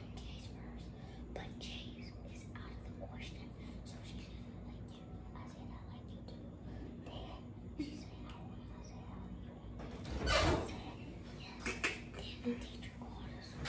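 A young boy whispers softly up close.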